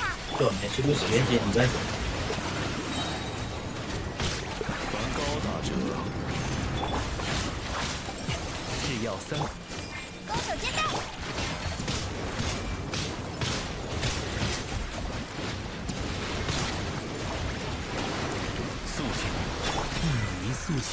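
Game magic effects whoosh and crackle with bursts of impacts.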